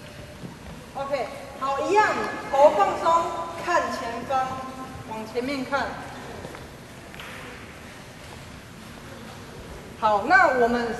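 A woman speaks calmly and softly into a microphone in a large echoing hall.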